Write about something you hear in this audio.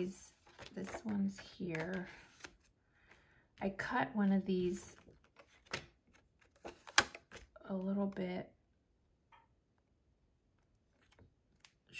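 Stiff paper cards rustle and tap as they are handled.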